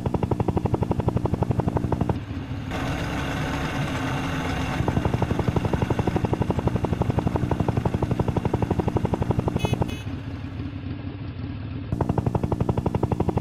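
A helicopter's rotor chops rapidly.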